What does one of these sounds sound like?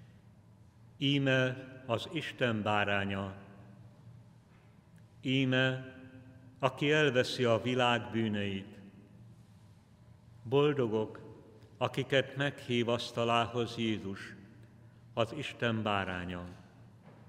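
An elderly man chants slowly into a microphone, echoing in a large hall.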